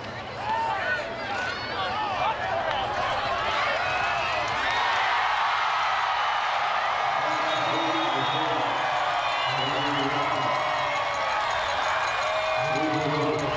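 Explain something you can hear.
A large crowd cheers and roars loudly outdoors.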